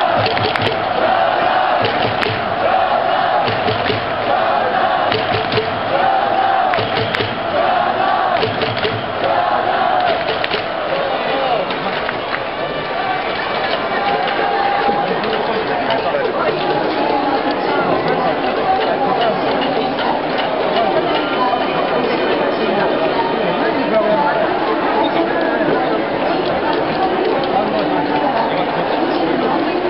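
A large crowd sings and cheers loudly in a big echoing stadium.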